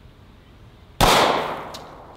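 A pistol fires a single loud shot that echoes outdoors.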